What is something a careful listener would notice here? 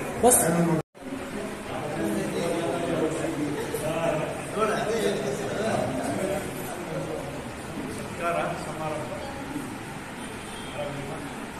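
A group of men and women chatter in the background.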